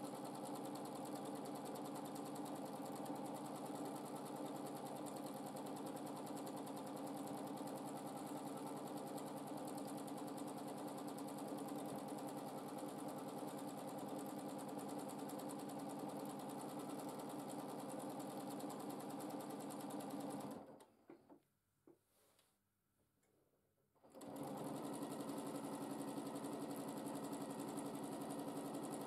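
A sewing machine hums and rattles steadily as it stitches.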